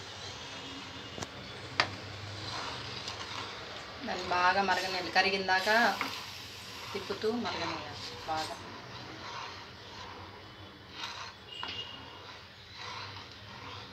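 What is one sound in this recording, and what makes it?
A wooden spoon stirs and scrapes in a pan of water.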